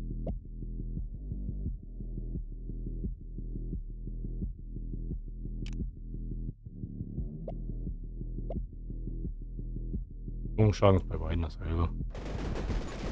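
Muffled electronic game music plays with a steady beat.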